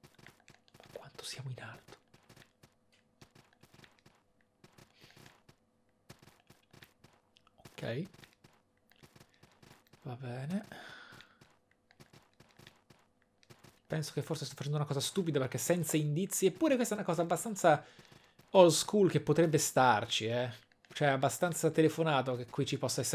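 A young man talks into a close microphone, at first in short bursts and then with animation.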